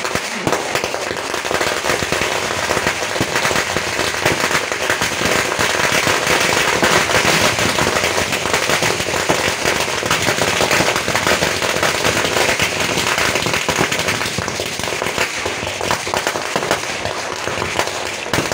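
A ground fountain firework hisses and roars steadily.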